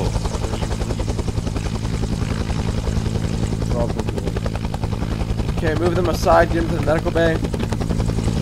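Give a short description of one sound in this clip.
A helicopter's rotor thumps steadily close by.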